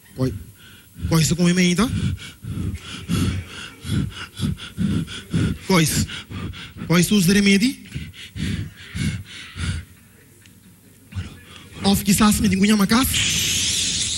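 A second man shouts loudly in bursts.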